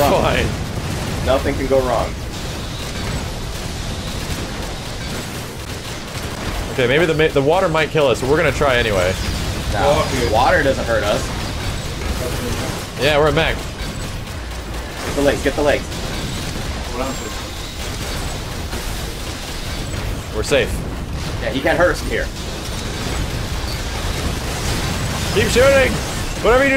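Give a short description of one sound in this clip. Game explosions and gunfire rumble on steadily.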